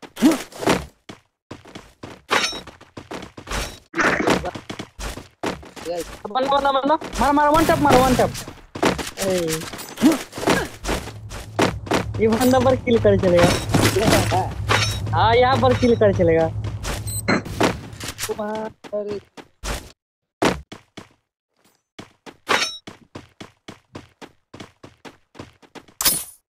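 Footsteps patter quickly on grass and hard floors.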